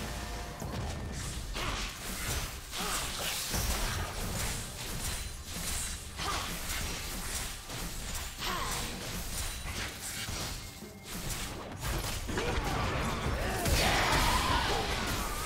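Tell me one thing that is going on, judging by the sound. Blades and blows clash in quick bursts.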